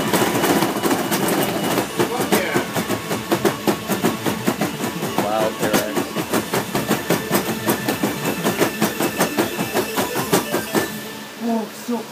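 Loud dance music with a fast, steady beat plays from an arcade machine.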